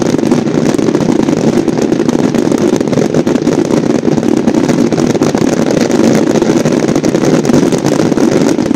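Fireworks crackle and bang steadily in the distance.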